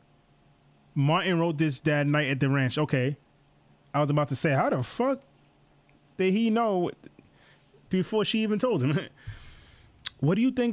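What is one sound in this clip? A man reads aloud with animation into a close microphone.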